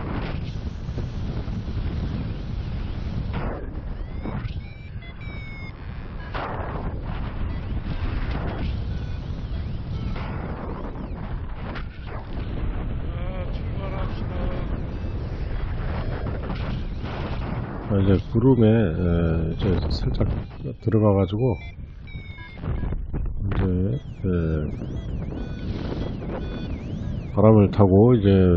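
Wind rushes steadily past, outdoors high in the air.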